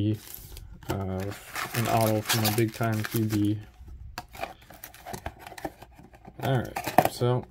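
Cardboard packaging rustles and scrapes as hands handle it.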